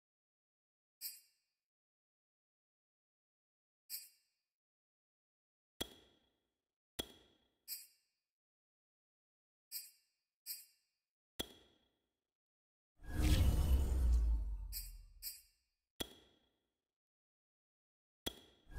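Short electronic menu clicks sound as a selection moves.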